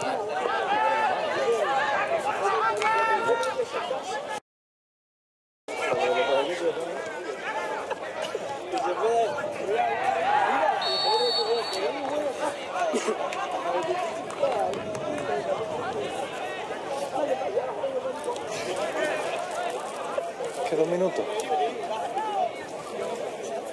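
Young men shout and call out to each other across an open sports field.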